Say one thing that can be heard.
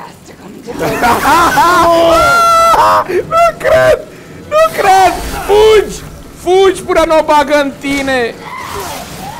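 A woman screams loudly in anguish.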